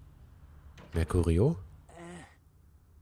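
A man groans weakly up close.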